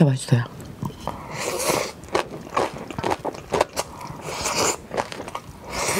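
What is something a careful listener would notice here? A woman chews a mouthful of rice close to a microphone.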